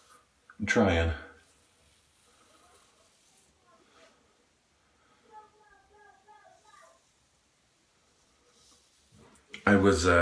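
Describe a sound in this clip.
A razor scrapes across a man's head.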